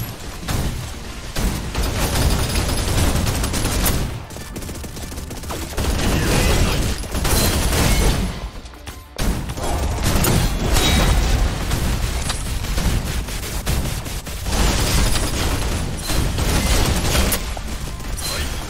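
Blades swish and clash with metallic hits.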